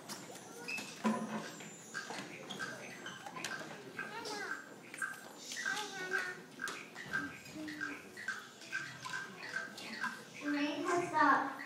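Young children sing and chant loudly in an echoing hall.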